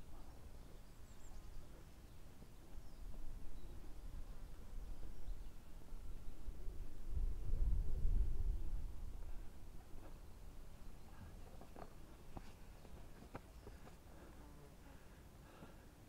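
Footsteps shuffle and slide on loose sand in the distance.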